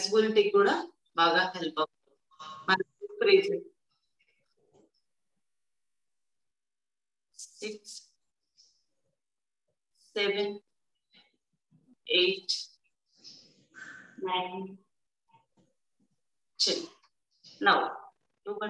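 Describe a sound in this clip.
A woman speaks calmly and clearly, with pauses.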